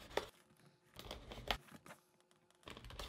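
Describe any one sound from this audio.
A knife slices through tape on a cardboard box.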